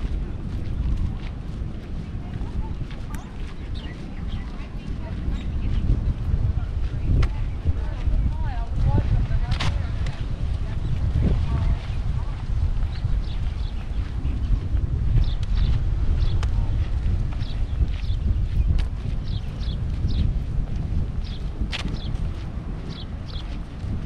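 Wind blows steadily across an open outdoor space.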